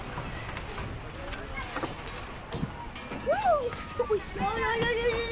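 Children laugh and shout at play.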